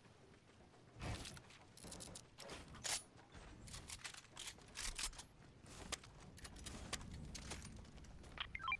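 Quick footsteps patter on grass in a video game.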